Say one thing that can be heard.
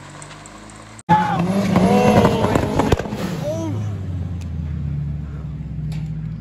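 A car engine revs during a burnout.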